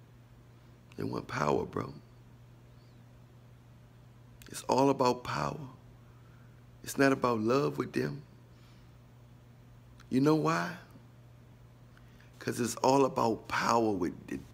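A man speaks close to the microphone in short, calm bursts with pauses between them.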